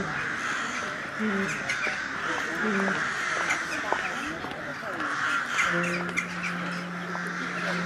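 A crowd of men and women murmur and chat nearby outdoors.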